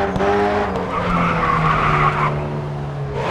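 Tyres screech as a car slides through a bend.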